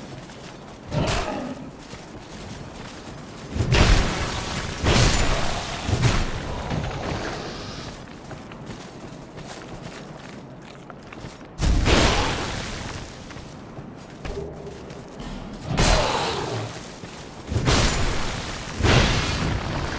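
Heavy sword blows strike with loud thuds.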